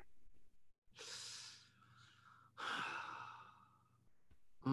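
A young man laughs softly over an online call.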